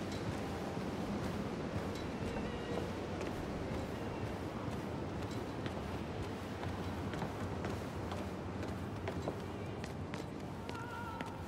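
Footsteps thud on stairs and a hard floor at a walking pace.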